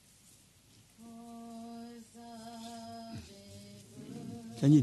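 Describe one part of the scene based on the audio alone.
An elderly man chants in a low, steady voice through a microphone.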